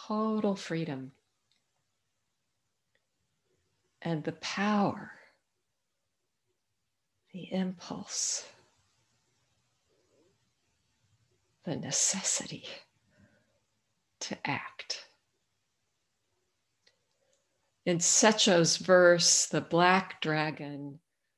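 An older woman speaks calmly in short bursts with pauses, heard over an online call.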